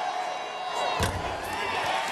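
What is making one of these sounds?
A basketball clangs off a rim.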